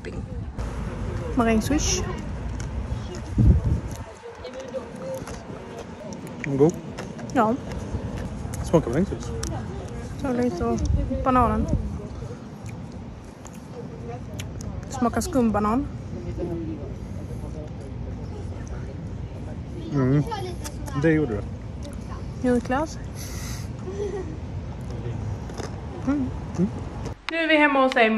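A young woman talks casually close by.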